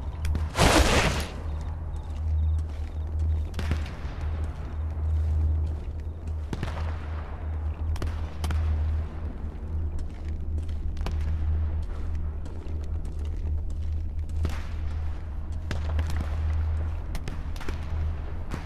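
Soft footsteps scuff slowly on stone.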